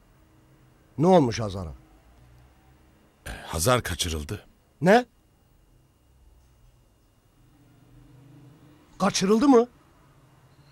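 A middle-aged man speaks tensely in short bursts, close by.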